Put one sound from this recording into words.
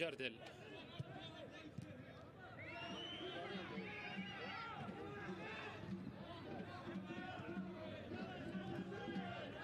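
A sparse crowd murmurs in an open stadium.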